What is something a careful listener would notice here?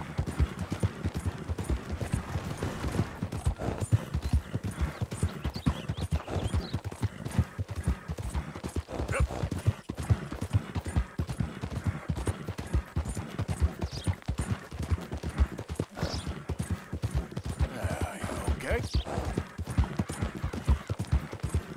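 Horse hooves thud rapidly on a dirt trail.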